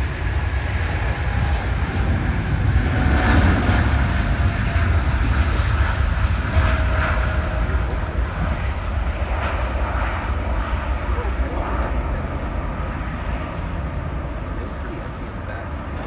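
A jet airliner's engines roar loudly as it speeds down a runway and climbs away, slowly fading.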